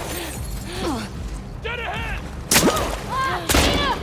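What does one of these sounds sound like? Feet splash through shallow water.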